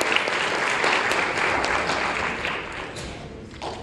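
A choir of young men sings in a large echoing hall.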